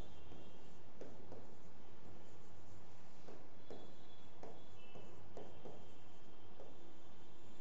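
A pen taps and scratches on a touch board.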